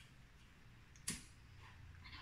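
A lighter clicks.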